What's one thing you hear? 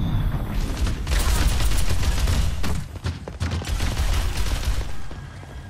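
Rapid energy guns fire bursts of shots.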